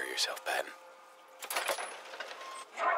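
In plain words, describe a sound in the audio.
A heavy metal door clanks open.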